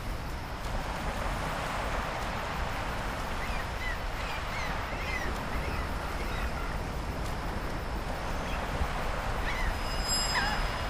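Footsteps patter quickly over grass and dirt.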